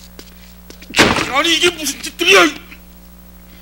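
Men shout loudly and struggle close by.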